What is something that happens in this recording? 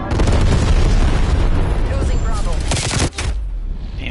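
A rifle fires a quick burst of gunshots.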